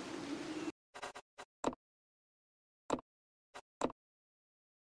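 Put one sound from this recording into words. Short menu clicks sound a few times.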